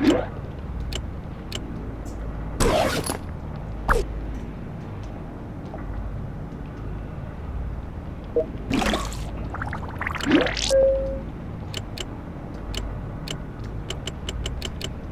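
Short crisp interface clicks tick in quick bursts.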